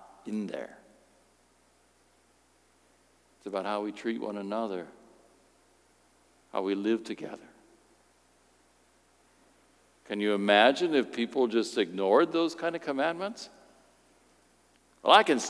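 A middle-aged man speaks calmly through a microphone, with pauses between phrases.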